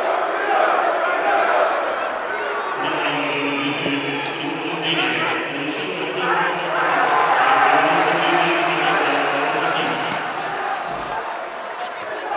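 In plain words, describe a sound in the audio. A large stadium crowd chants and cheers loudly outdoors.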